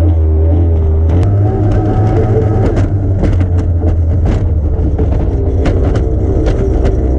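Spray and wind rush past the cockpit.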